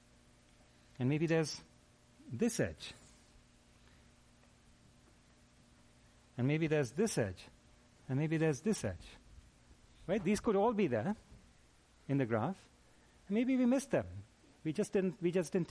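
A middle-aged man speaks calmly in short phrases, heard through a microphone in a large room.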